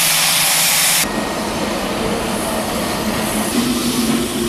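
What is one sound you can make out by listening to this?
A steam locomotive idles with a low rumble.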